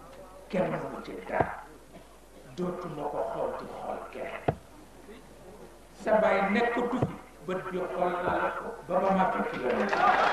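A man speaks with emphasis through a loudspeaker.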